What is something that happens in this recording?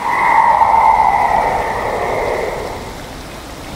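A shrill, eerie shriek rings out.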